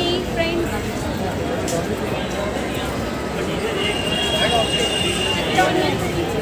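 A crowd of people chatters outdoors nearby.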